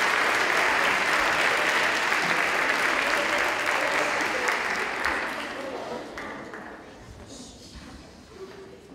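An audience applauds loudly in a large echoing hall, then the clapping fades away.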